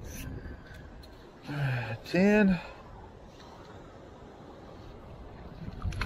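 A metal scoop digs into wet sand.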